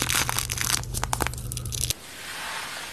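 A face mask peels away from skin with a soft tearing sound.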